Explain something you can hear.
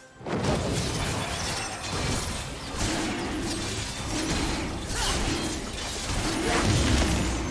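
A monster roars as it is attacked.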